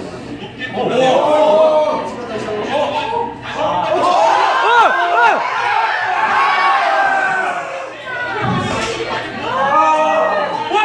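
A group of young men shouts and cheers loudly in excitement.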